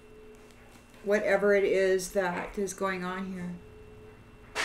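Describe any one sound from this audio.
A middle-aged woman speaks briefly and calmly, close to a microphone.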